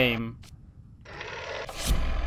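A rotary telephone dial clicks and whirs as it turns.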